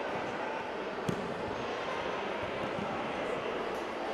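Bodies thump onto mats in a large echoing hall.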